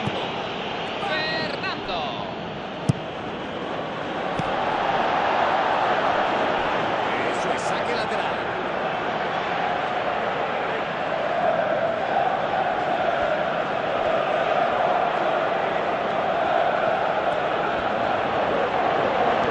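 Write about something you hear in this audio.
A large stadium crowd roars and chants steadily.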